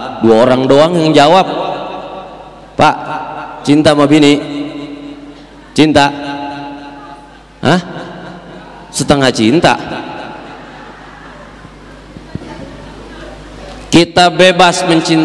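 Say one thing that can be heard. A young man preaches loudly in short, forceful bursts through a microphone and loudspeakers, with a long echo after each phrase.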